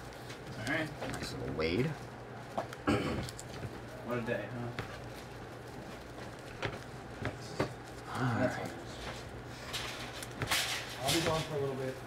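Plastic wrappers crinkle as trading card packs are torn open.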